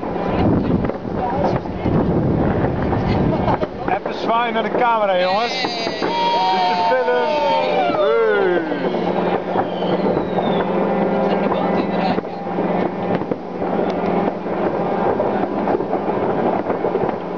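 A group of young men and women chatter and laugh close by, outdoors.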